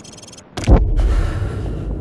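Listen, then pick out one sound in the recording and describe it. A heavy body slams into the ground with a loud thud.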